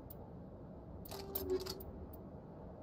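A short electronic whoosh sounds as a menu opens.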